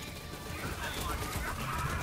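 A laser beam hums and crackles.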